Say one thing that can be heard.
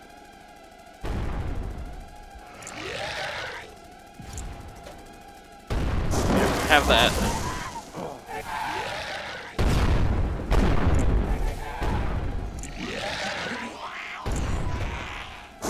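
A weapon fires loud, booming energy blasts.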